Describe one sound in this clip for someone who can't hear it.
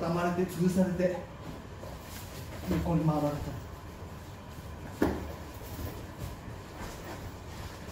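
Fabric rustles and bodies thump softly on a mat.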